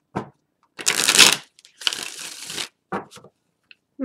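A deck of cards is shuffled with a quick riffling rustle.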